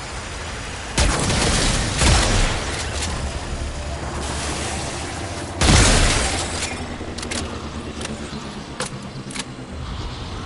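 Gunfire bursts sharply.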